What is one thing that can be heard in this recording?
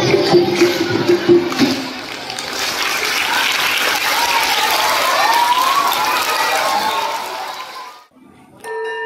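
A choir of young children sings together into microphones.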